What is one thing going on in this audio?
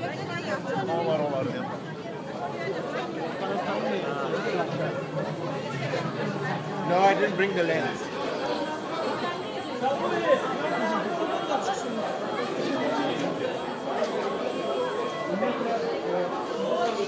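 A crowd of young people chatter all around, close by.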